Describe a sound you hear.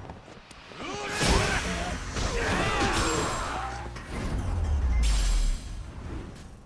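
Punches and kicks land with heavy thuds.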